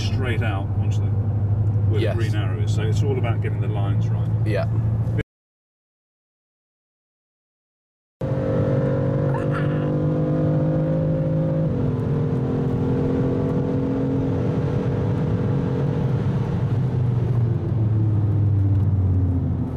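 A car engine hums steadily from inside the cabin, then drops in pitch as the gear changes.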